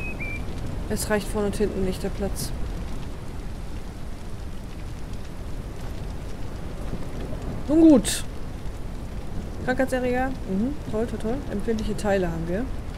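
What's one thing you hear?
A young woman speaks casually into a close microphone.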